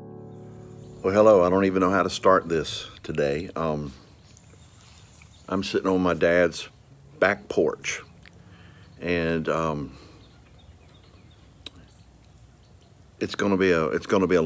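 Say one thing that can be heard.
A middle-aged man speaks calmly and close to the microphone, in short phrases with pauses.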